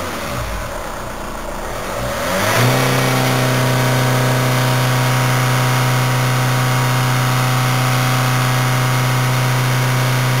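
A car engine runs at a fast, steady idle, heard from inside the car.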